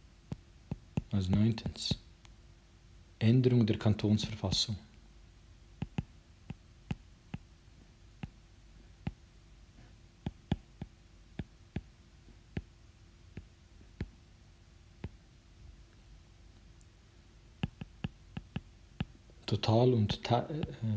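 A man speaks calmly and close to a microphone, in short bursts with long pauses.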